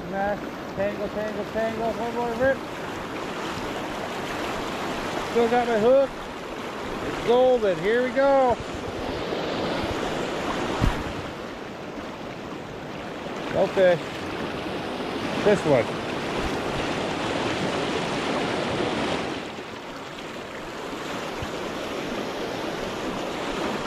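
A fast river rushes and churns over rocks close by.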